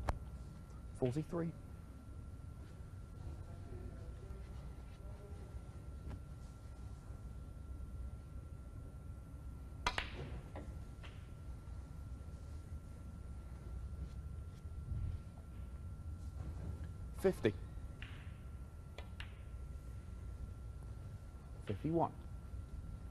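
Billiard balls knock against each other.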